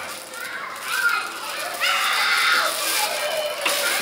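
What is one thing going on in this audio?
A plastic bag crinkles as it is pulled off.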